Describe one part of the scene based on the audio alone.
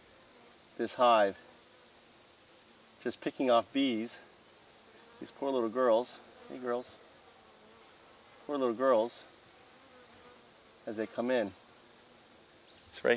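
A middle-aged man speaks calmly in short phrases close by.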